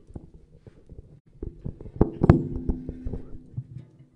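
A microphone bumps and thumps as it is handled.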